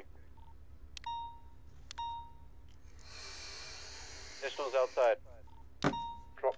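A short electronic alert chime pings.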